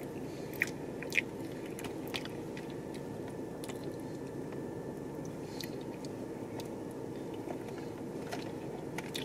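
A woman chews food close by, with soft wet clicks.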